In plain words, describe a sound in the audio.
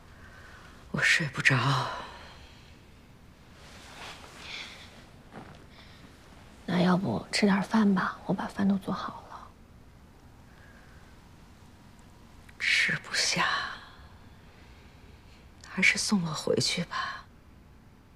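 An elderly woman speaks quietly and tearfully, close by.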